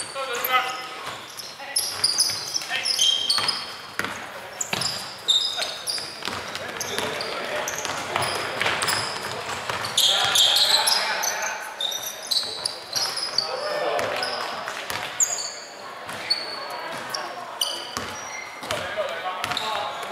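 Young men shout and call out across the court.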